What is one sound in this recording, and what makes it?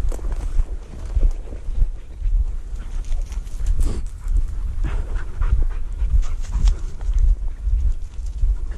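Footsteps crunch and rustle through dry undergrowth.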